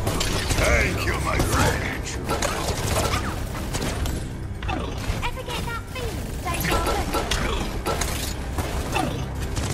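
An energy beam weapon hums and crackles as it fires.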